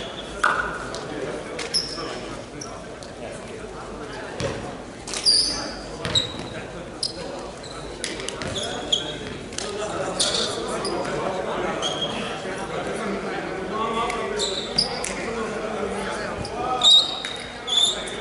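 A volleyball thuds off hands and arms, echoing in a large hall.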